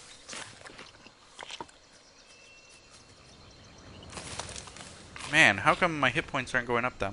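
A small creature's feet patter softly on the ground.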